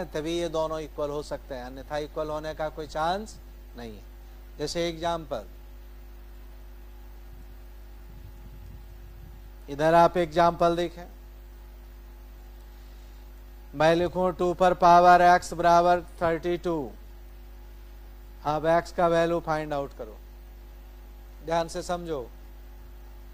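A man speaks calmly into a close microphone, explaining in short bursts with pauses.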